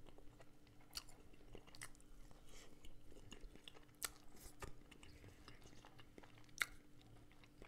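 A man chews crunchy food close to a microphone.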